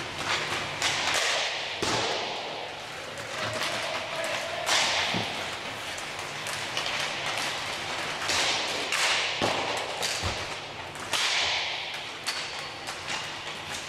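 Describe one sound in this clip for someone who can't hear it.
Inline skate wheels roll and scrape across a hard floor.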